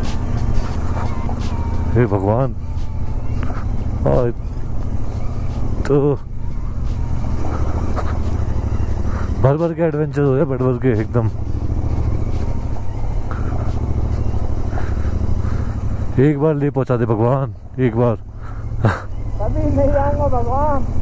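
A motorcycle engine rumbles steadily at low speed.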